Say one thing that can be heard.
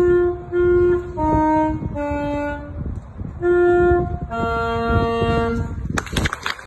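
A saxophone plays a slow melody of held notes.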